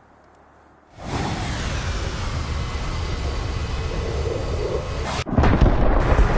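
A jet engine whines steadily in flight.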